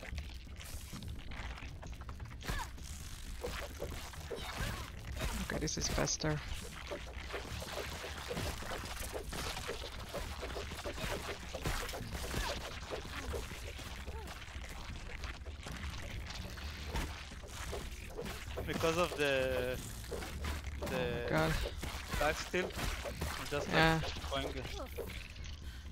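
Weapon blows strike insects in rapid combat.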